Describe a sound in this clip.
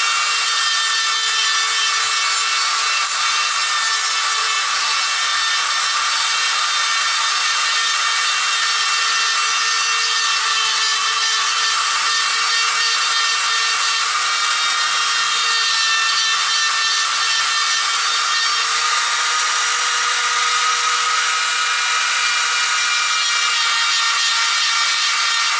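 A power sander whirs steadily against wood.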